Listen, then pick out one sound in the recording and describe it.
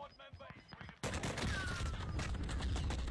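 Gunfire bursts loudly in a video game.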